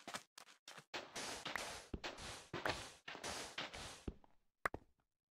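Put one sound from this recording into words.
Blocks of sand crumble and break with quick scraping thuds.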